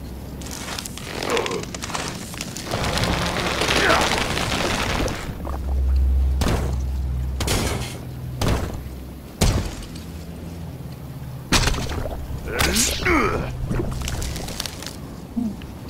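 Magical game effects whoosh and shimmer as a character transforms.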